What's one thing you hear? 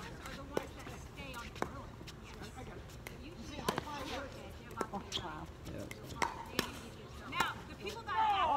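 Paddles pop against a plastic ball in a quick back-and-forth rally.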